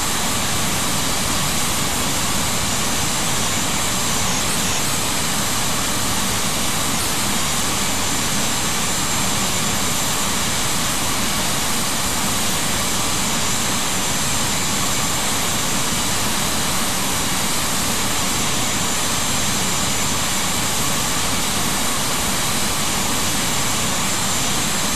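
Jet engines roar steadily as an airliner flies.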